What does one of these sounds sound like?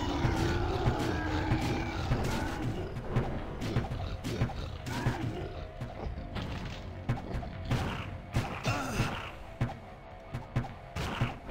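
Heavy blows land with sharp, repeated thuds.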